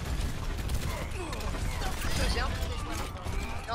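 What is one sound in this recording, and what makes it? Grenades from a launcher explode with low booms in a video game.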